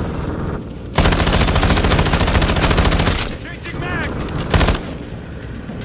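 A rifle fires loud rapid bursts close by.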